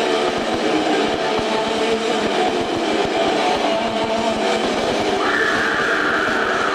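Drums pound fast, heard through a live club sound system.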